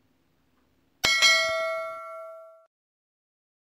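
A bright chiming jingle rings out and fades.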